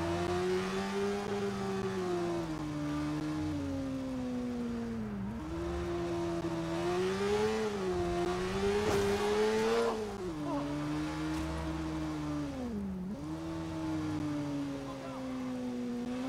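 A motorbike engine hums, rising and falling in pitch as it shifts gears.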